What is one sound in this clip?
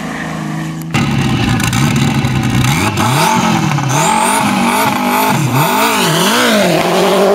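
A race car engine idles loudly and close by.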